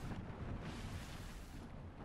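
Thunder cracks from a lightning strike.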